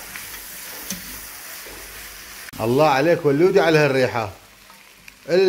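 A spatula scrapes and stirs food in a metal pot.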